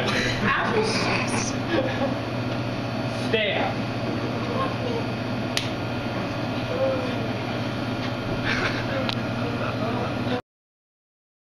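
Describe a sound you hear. Young people chatter and laugh nearby.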